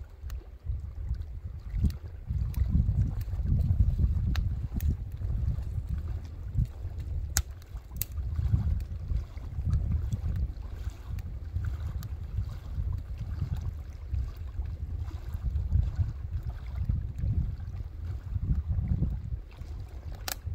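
Wind gusts steadily across the microphone outdoors.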